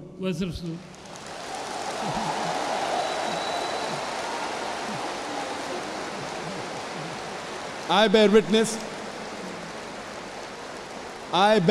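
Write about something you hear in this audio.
A large crowd murmurs through a loudspeaker.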